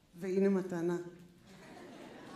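A woman speaks into a microphone over loudspeakers in a large hall.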